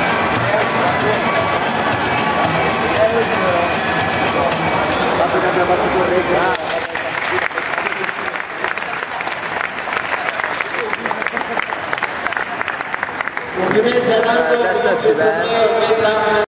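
Loud electronic dance music plays from an arcade machine's speakers.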